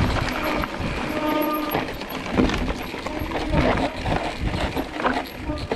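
A bicycle's frame and chain rattle over bumps.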